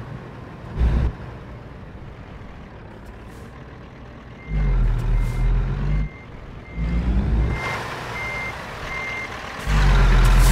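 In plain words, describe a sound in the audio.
A truck engine revs up in heavy bursts.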